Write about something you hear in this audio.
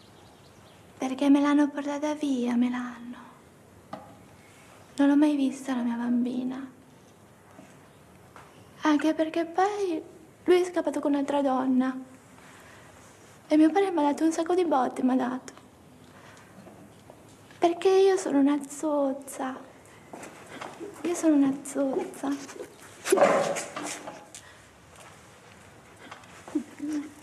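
A young woman speaks calmly and hesitantly nearby.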